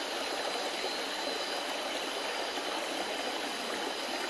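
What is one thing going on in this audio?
Water sloshes softly as a person wades through it.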